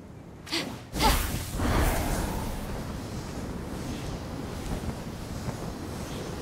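Wind rushes loudly past a gliding figure.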